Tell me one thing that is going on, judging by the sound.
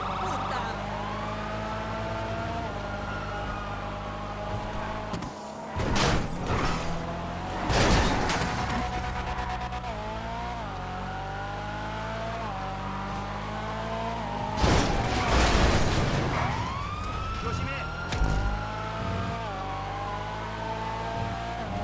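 A car engine roars and revs up through the gears.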